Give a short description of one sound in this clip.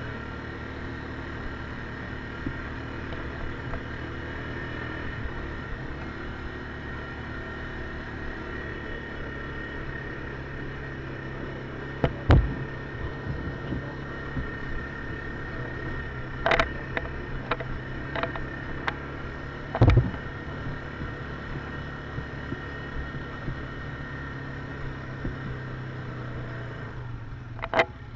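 An idling engine rumbles steadily close by.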